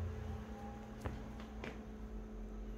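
A finger taps on a touchscreen.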